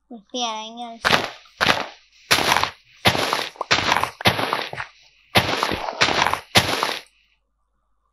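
Dirt crunches in quick, repeated bursts as a shovel digs.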